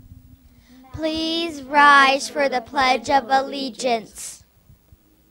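A young girl speaks brightly into a microphone.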